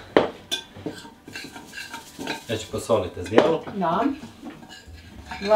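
A spoon clinks and scrapes against a bowl.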